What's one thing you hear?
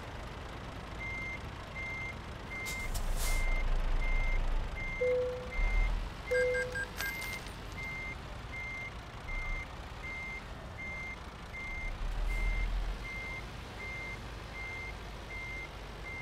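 A truck's reversing alarm beeps.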